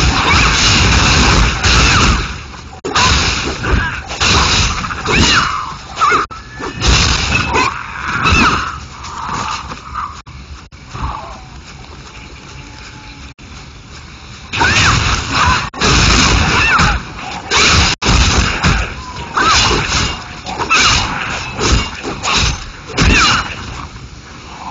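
Swords clash and strike in a fast, noisy fight.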